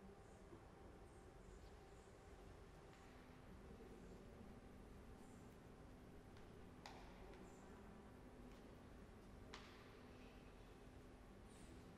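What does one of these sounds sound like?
A choir holds soft, steady notes in a large echoing hall.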